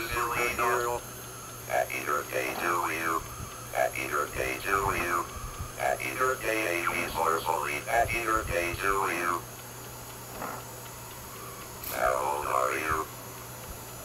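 A small robot's synthesized voice sings in a buzzy electronic tone.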